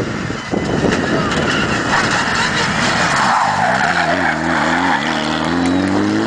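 A second rally car engine roars close by and revs up.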